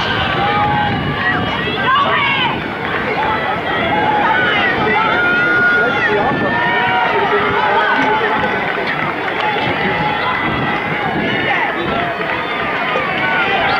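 A crowd of teenagers chatters and calls out outdoors.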